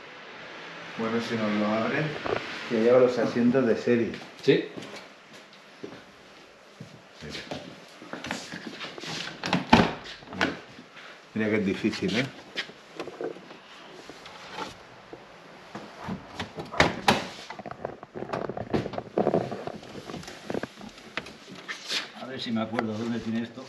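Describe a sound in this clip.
A man speaks close by, calmly explaining.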